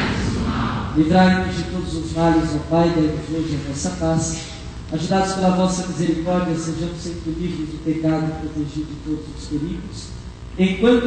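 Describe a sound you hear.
A man chants in a sung voice through a microphone.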